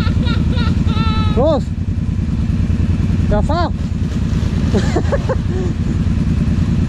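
Tyres churn and splash through thick mud.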